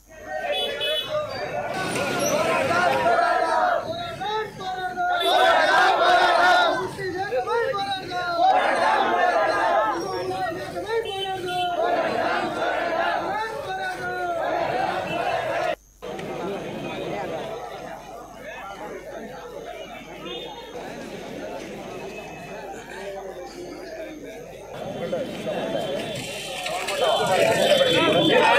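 A large crowd of men chants slogans loudly outdoors.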